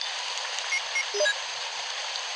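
Short electronic beeps chirp in quick succession.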